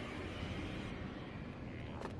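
Torch flames crackle softly.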